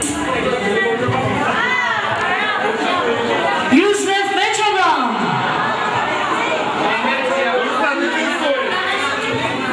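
A crowd of men and women chatter loudly in an echoing hall.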